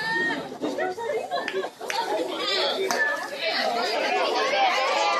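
A crowd of spectators shouts and cheers nearby outdoors.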